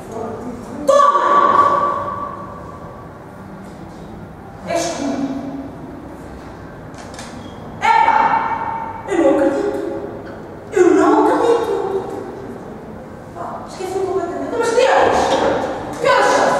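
A young woman sings through a microphone and loudspeaker in an echoing room.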